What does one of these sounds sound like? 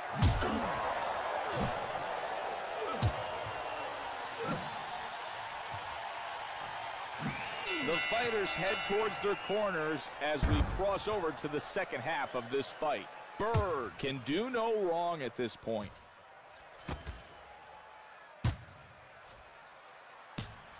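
Punches thud against gloves and bodies.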